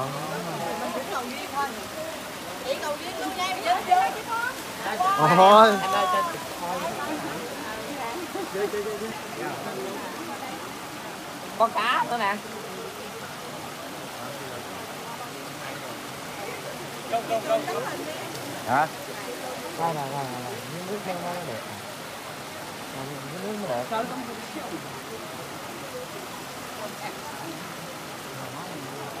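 Several women and men chatter nearby outdoors.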